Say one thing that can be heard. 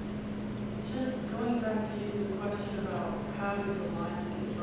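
A woman speaks into a microphone, amplified in a large room.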